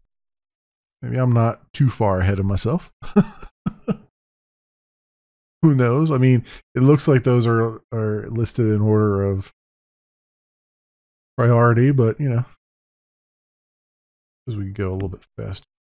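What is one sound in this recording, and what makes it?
A man talks calmly and casually into a close microphone.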